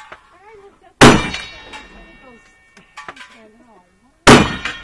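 A gun fires loudly, with a sharp ringing echo.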